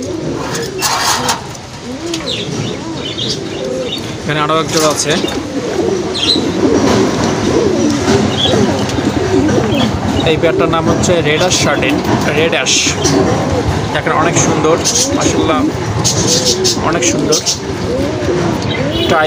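Pigeons coo steadily and closely.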